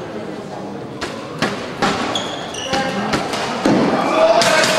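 Rackets smack a shuttlecock back and forth in a rally.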